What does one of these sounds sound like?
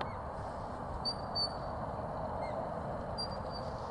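A man gives short, sharp, high whistles.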